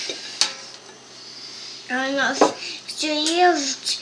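A spoon scrapes food from a pan.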